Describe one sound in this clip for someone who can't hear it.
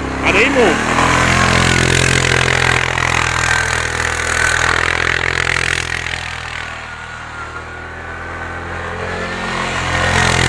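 A quad bike engine revs loudly, rising and falling.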